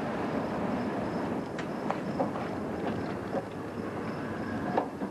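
A car engine runs low as the car drives slowly.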